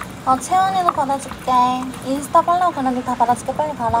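Chopsticks click against a plastic food container.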